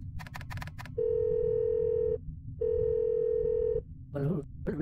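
A phone ringing tone beeps twice in long steady tones.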